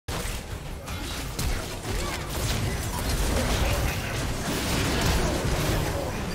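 Fantasy battle sound effects crackle, zap and whoosh rapidly.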